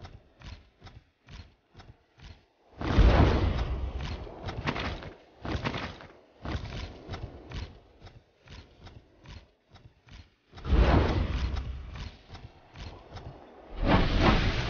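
Quick footsteps patter as a character runs.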